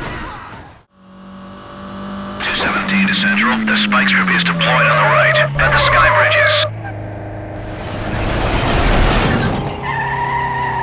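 A car engine drones and winds down as the car slows.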